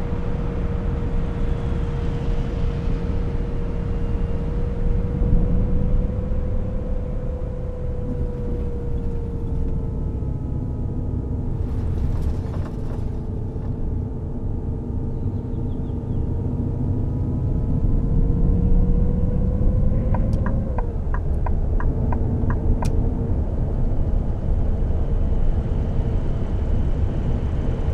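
A bus engine hums steadily as the bus drives along.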